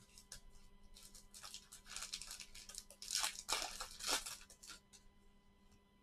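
A plastic wrapper crinkles and rustles as it is handled.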